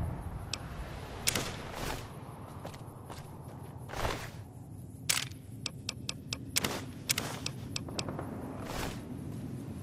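Menu selection clicks sound as items are browsed in a video game inventory.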